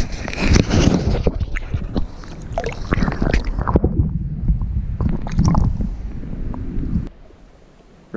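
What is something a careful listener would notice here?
Water splashes and sloshes as a fish is let go into a lake, heard partly from under the water.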